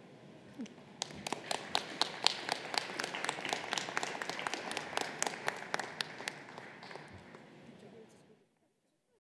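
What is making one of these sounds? A small group applauds with light clapping that fades out.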